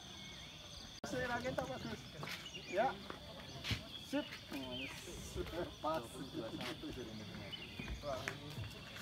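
Several adults chat with one another nearby, outdoors.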